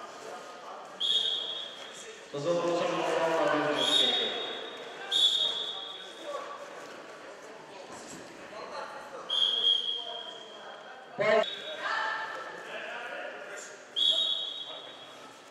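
A referee blows short, shrill whistle blasts.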